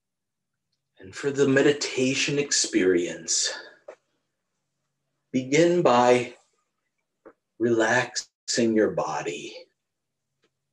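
A middle-aged man talks calmly and close to a microphone, as if in an online call.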